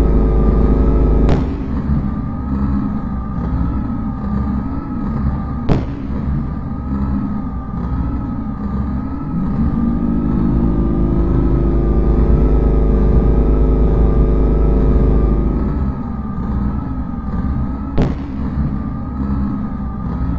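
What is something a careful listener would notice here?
Low, droning electronic music plays steadily throughout.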